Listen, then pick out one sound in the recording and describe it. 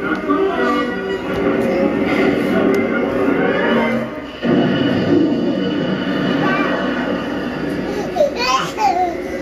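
A young toddler babbles and squeals.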